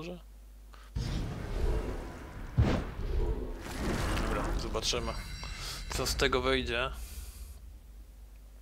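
Game sound effects whoosh and rumble as cards are played.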